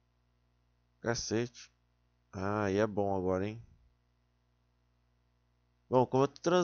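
A young man speaks close to a microphone in short bursts, with pauses between.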